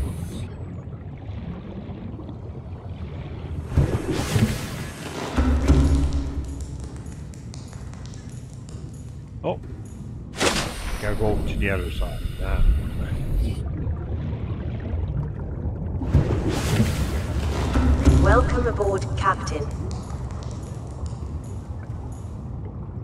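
A man talks calmly into a headset microphone.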